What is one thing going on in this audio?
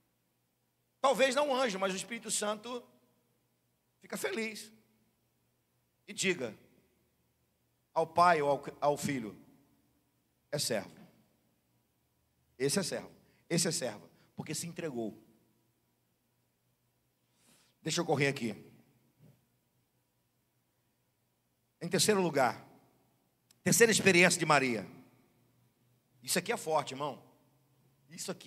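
A middle-aged man speaks calmly into a microphone in short phrases with pauses, heard through a loudspeaker.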